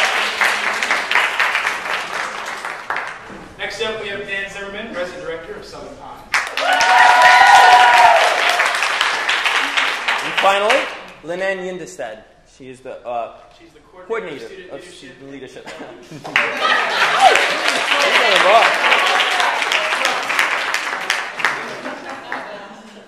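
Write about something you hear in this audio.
An audience claps and cheers in a room.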